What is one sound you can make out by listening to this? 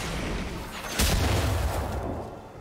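A loud magical blast booms.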